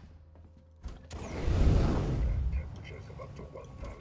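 A flamethrower roars in bursts of fire.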